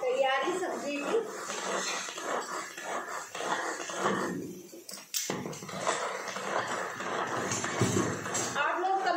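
A spoon scrapes inside a plastic jar.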